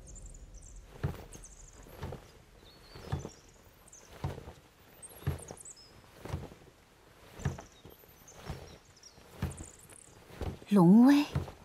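Footsteps tap slowly on a wooden floor.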